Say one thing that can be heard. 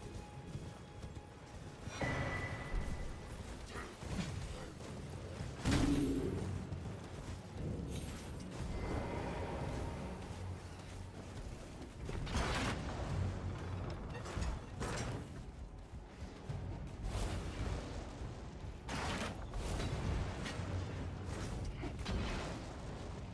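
Footsteps run quickly over grass and stone.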